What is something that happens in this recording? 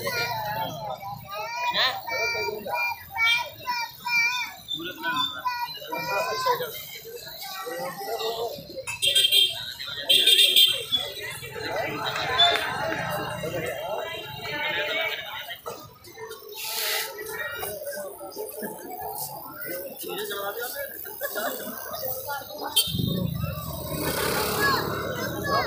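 A tattoo machine buzzes close by.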